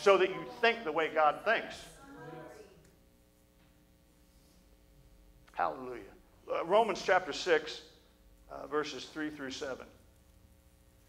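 A middle-aged man speaks calmly into a microphone, heard through a loudspeaker, with pauses.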